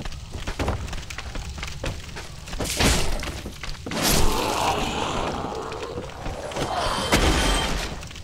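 A blade slashes and strikes flesh with heavy thuds.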